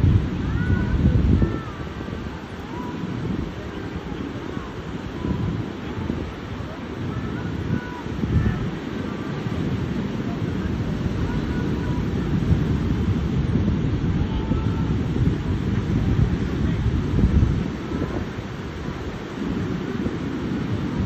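Ocean waves crash and wash steadily onto a beach outdoors.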